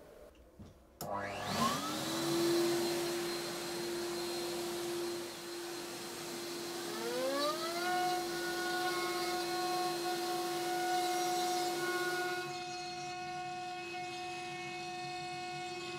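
A router motor spins up and runs with a steady high whine.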